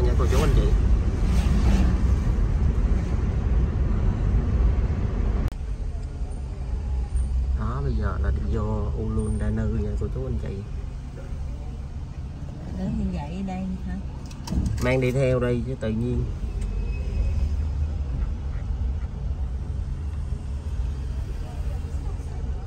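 A car engine hums with road noise as the car drives, then idles quietly.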